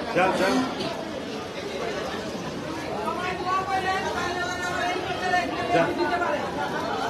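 A crowd of men and women chatters loudly all around.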